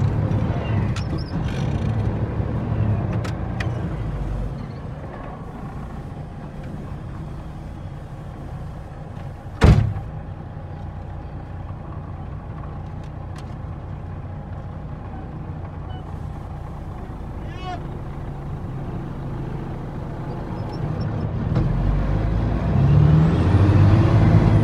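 A vehicle's body rattles and bumps over uneven ground.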